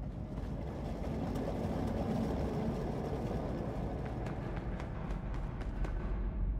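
A train rumbles closer and grows louder.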